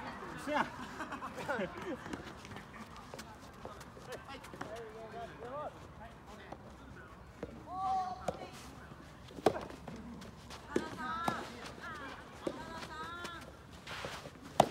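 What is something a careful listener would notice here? Tennis rackets strike balls with sharp pops.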